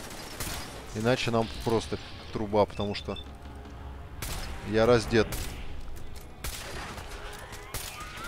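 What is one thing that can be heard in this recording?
Laser beams zap and crackle.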